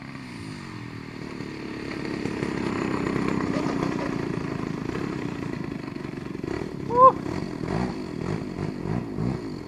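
Wheels rumble and bump over grass.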